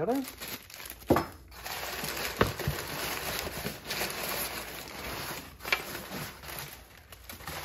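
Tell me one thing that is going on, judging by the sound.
Packing paper rustles and crinkles as it is handled.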